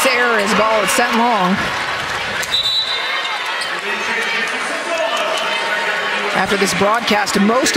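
A crowd cheers and claps in a large echoing hall.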